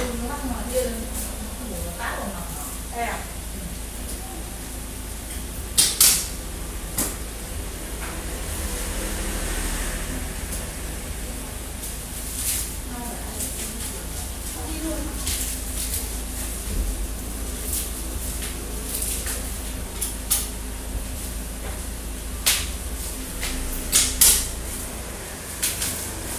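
Small items clink and rattle nearby.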